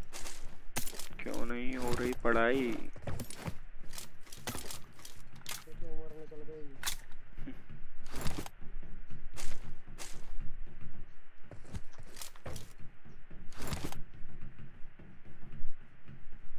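Footsteps clang on a metal roof.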